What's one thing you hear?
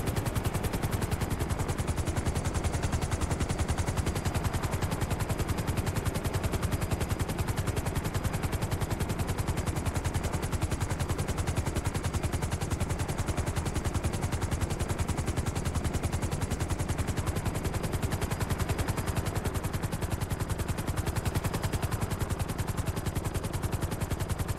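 A helicopter's rotor blades thump rapidly and steadily.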